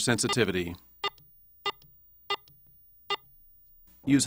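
A metal detector gives short electronic beeps as its buttons are pressed.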